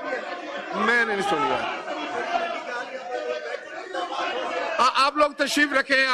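Several men murmur and talk in the background.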